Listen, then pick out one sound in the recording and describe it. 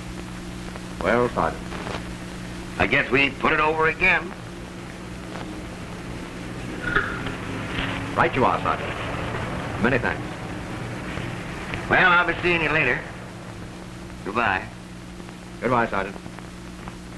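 A second man answers calmly, heard through an old, hissing film soundtrack.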